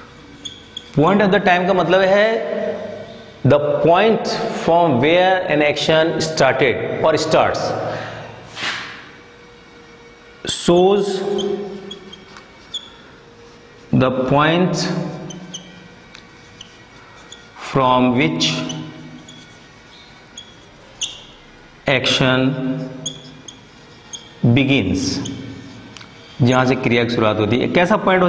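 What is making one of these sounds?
A middle-aged man speaks calmly and clearly, as if teaching, close to a microphone.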